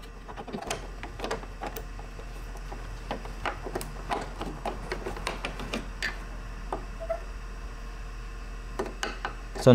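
Plastic trim clips click and rustle under fingers.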